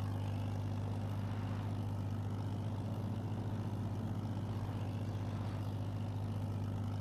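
A harrow rattles over a dirt track.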